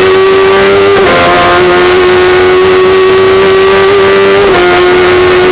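Gear shifts briefly interrupt the race car engine's roar.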